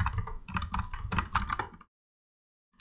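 Keys clatter quickly on a keyboard.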